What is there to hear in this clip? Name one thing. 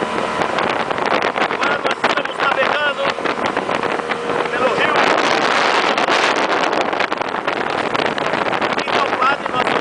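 Wind buffets the microphone on a moving motorboat.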